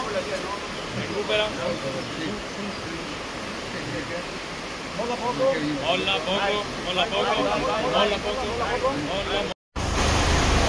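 Men call out to each other outdoors.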